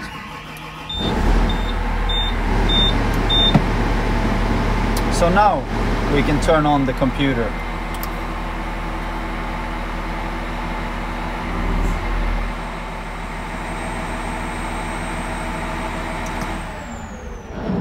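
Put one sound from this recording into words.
A heavy machine's engine idles with a steady low hum.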